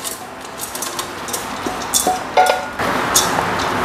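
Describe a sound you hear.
A spatula scrapes cooked rice out of a pan into a pot.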